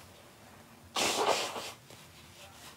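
A woman blows her nose into a tissue.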